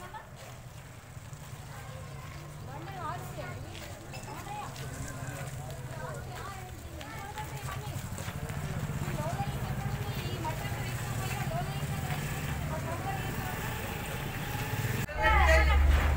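A woman talks with animation outdoors.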